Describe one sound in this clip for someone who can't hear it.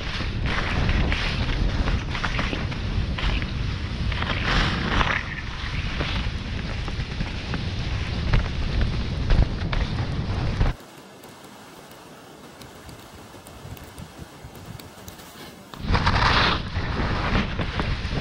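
Skis hiss through soft snow.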